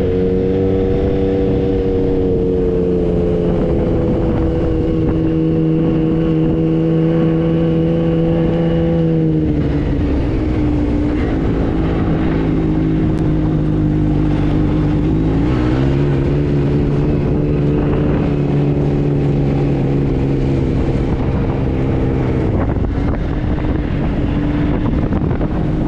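Tyres crunch over sand.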